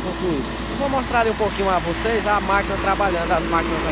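A tractor engine idles nearby.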